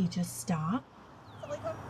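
A woman speaks brightly to a dog nearby.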